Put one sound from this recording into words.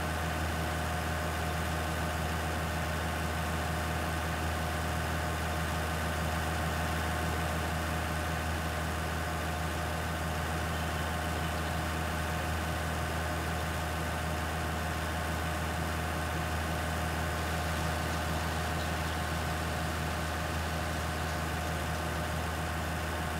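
A forage harvester whirs as it chops crops.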